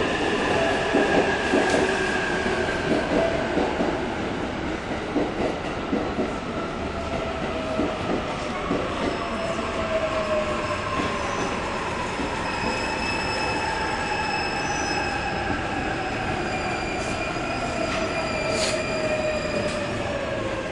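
A train's wheels rumble and clack over the rails.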